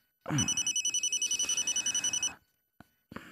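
A phone rings with a short electronic tune.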